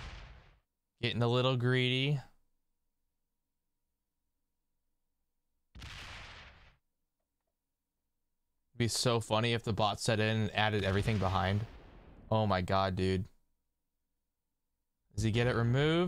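A young man speaks close to a microphone, in short bursts.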